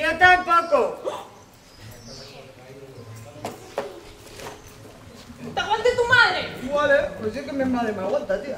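A young woman speaks loudly, acting, outdoors.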